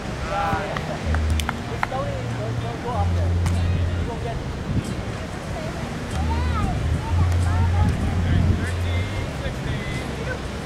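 Young men shout and call out to each other at a distance outdoors.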